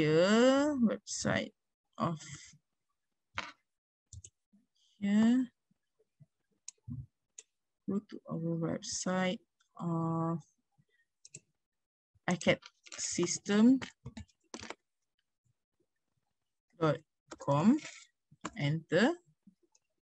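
A young woman talks calmly over an online call.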